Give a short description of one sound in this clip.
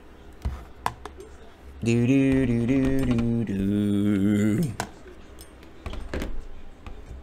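Plastic card cases click and tap on a table.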